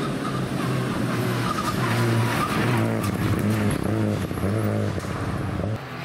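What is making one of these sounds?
Gravel sprays from a rally car's tyres.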